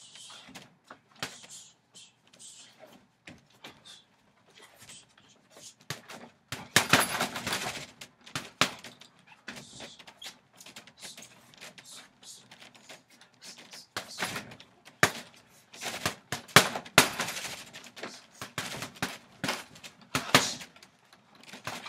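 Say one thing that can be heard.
Fists thump against a heavy punching bag in quick bursts.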